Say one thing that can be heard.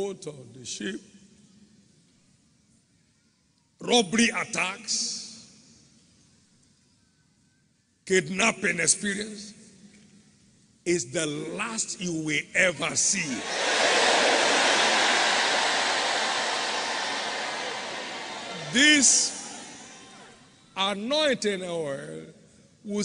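A man preaches loudly and with animation into a microphone in a large echoing hall.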